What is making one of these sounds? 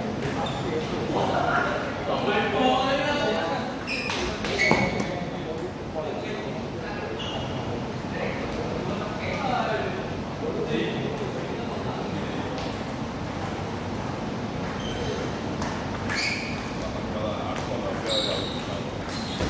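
A table tennis ball clicks back and forth off paddles and a table in a large echoing hall.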